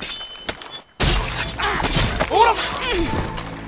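A blade strikes a body with a heavy, wet thud.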